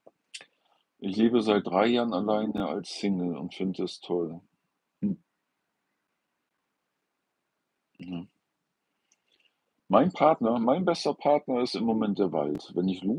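An older man speaks calmly, close by.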